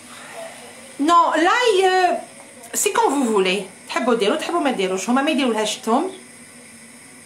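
A middle-aged woman speaks with animation close to the microphone.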